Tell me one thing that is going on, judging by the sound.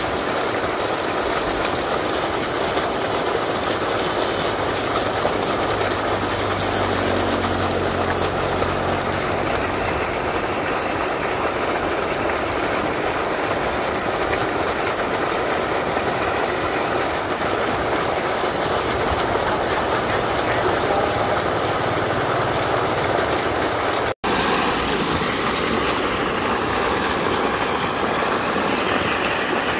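Thick mud gushes and splashes from a pipe.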